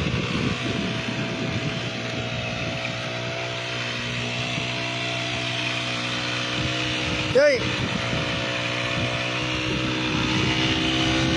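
A small petrol engine drones steadily at high speed.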